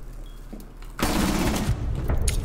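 A rifle fires a rapid burst of loud gunshots.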